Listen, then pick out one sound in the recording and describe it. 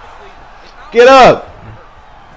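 A young man shouts out loudly.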